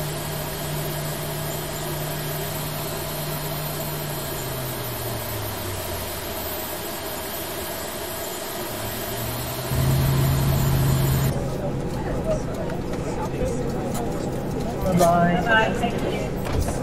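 A parked jet airliner hums steadily.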